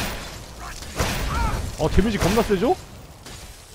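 A fire spell bursts with a roaring whoosh.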